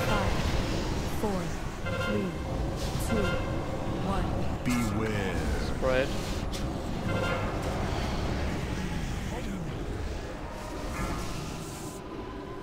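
Magic spells whoosh and chime amid a fight.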